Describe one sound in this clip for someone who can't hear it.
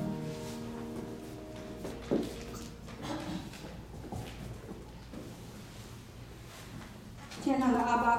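Women talk quietly nearby in a room.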